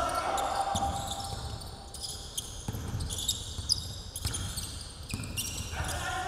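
A basketball thumps on a hardwood floor.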